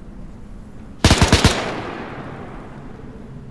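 A tank cannon fires with a loud boom that echoes away.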